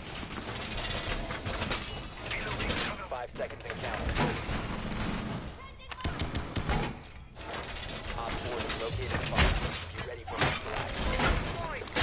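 Metal panels clank and rattle as a wall is reinforced.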